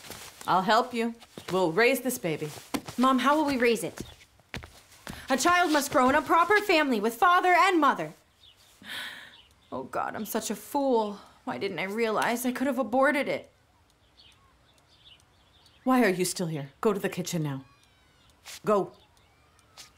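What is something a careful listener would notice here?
A middle-aged woman speaks with animation, close by.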